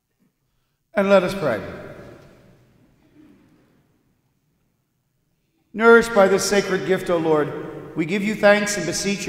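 An older man speaks out in a slow, ringing voice through a microphone, echoing in a large room.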